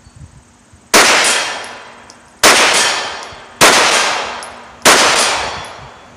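A gun fires loud single shots that ring out outdoors.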